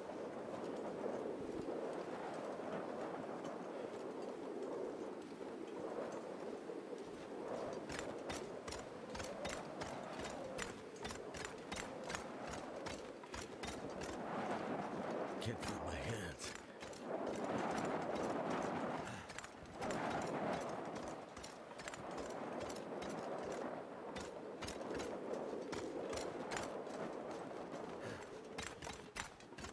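A strong wind howls steadily in a blizzard.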